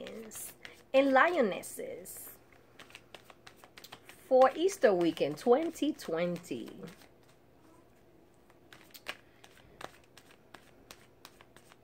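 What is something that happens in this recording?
Playing cards riffle and tap softly as they are shuffled.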